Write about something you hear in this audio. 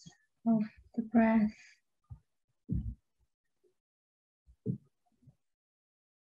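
A young woman speaks softly and slowly into a microphone, with long pauses.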